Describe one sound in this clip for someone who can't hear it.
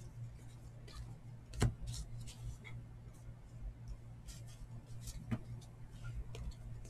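Stiff cards rustle and slap softly as they are shuffled by hand.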